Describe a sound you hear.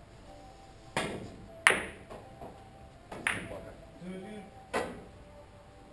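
Billiard balls click sharply against each other.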